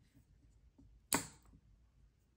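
A lever wire connector snaps shut with a sharp click.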